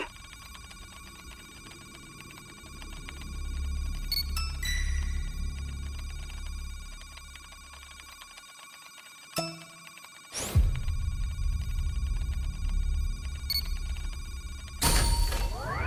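Game music plays with electronic tones.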